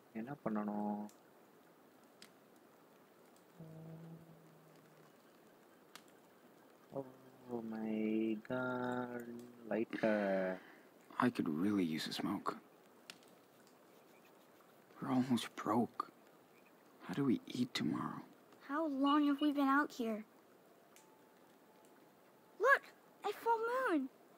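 A campfire crackles softly.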